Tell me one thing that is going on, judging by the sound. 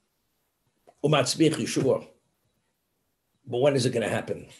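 An elderly man speaks calmly through a microphone in an online call.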